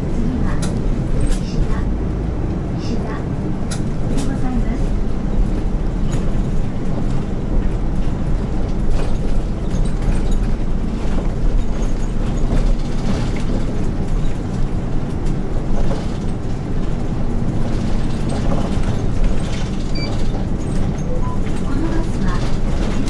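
A bus engine rumbles steadily as the bus drives along a street.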